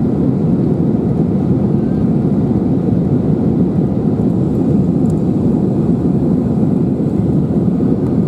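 A jet engine roars steadily from inside an airliner cabin.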